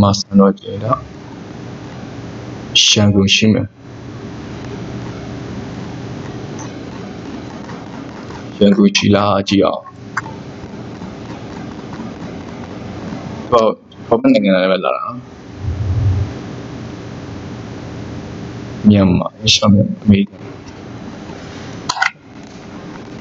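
A man talks calmly into a microphone in short bursts.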